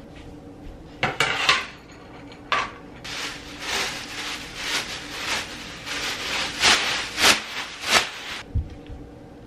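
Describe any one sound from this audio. Plastic sheeting rustles and crinkles close by.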